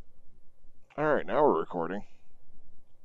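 A man in a helmet speaks briefly, close by.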